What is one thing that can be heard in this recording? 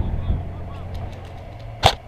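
An airsoft rifle fires a quick burst close by.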